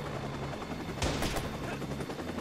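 A rifle fires a short burst of loud shots.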